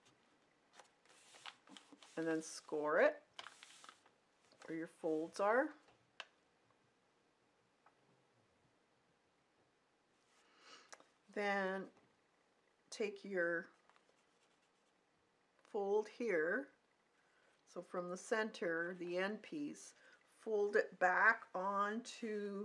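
Hands slide and smooth paper with a soft rustle.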